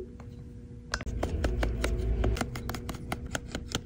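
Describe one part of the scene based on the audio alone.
An electric screwdriver whirs briefly.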